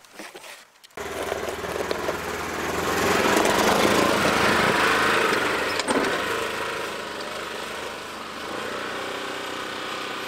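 An off-road vehicle engine roars as it drives away.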